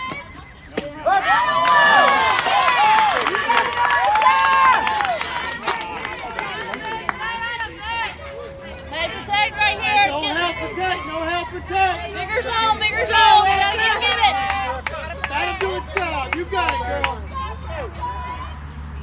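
Young women chant and cheer loudly outdoors.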